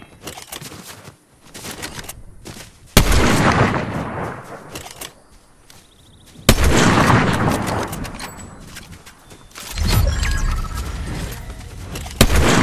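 Footsteps thud quickly on grass.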